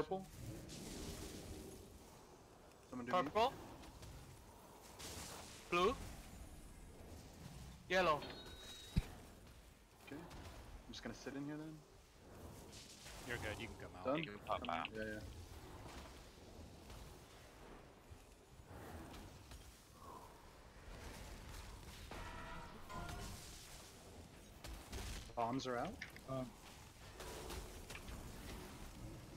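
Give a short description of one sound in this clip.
Magic spells whoosh and crackle in a fast battle.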